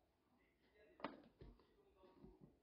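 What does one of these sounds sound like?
A plastic lid clicks shut.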